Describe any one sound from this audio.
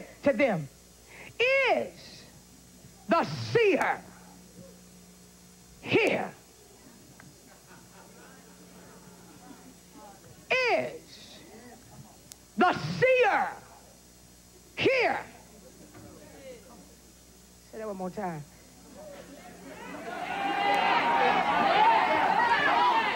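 A woman sings out short, rising phrases into a microphone, with long pauses between them.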